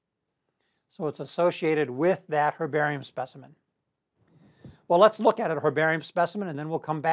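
An elderly man speaks calmly into a microphone, as if lecturing.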